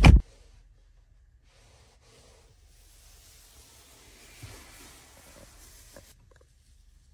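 A hand rubs and pats leather upholstery softly.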